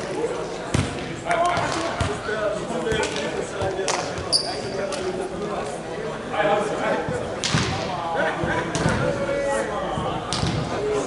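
A volleyball is struck and bounces, echoing in a large hall.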